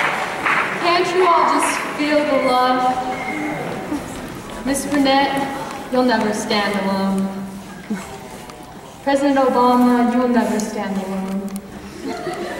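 A young man speaks through a loudspeaker in a large hall.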